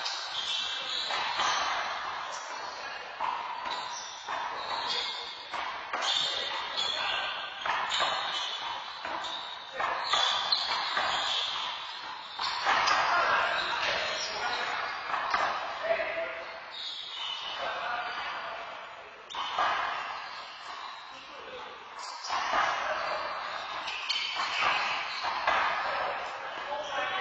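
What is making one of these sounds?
Rubber soles squeak sharply on a court floor.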